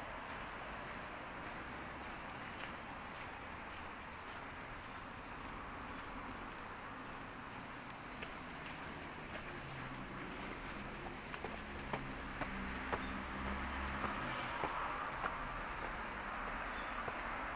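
Footsteps scuff on gravel and then climb stone steps outdoors.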